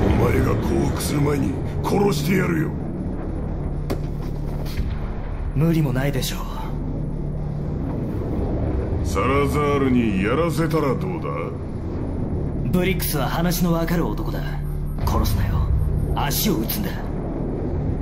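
A man speaks in a tense, threatening voice.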